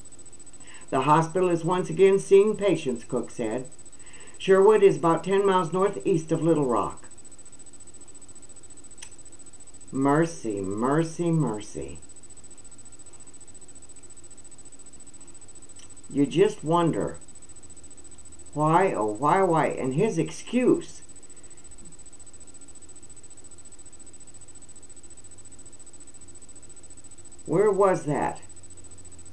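An elderly woman speaks calmly and close by, in short bursts with long pauses.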